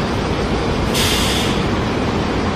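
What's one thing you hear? A bus's air brakes release with a short hiss.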